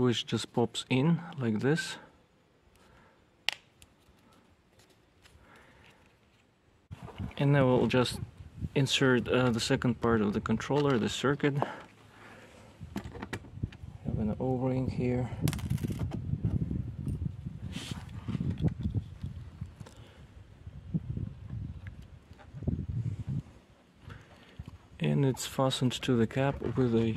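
Plastic and metal parts click and rattle as they are fitted together by hand.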